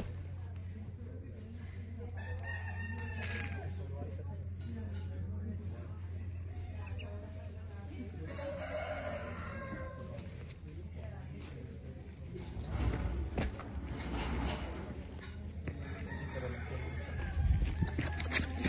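A young goat's hooves patter on dirt.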